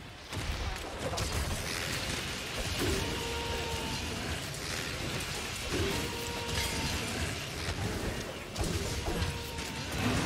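Sword blades slash and clang in rapid strikes.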